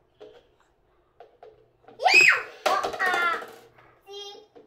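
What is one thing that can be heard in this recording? Plastic cups tumble and clatter onto a table and floor.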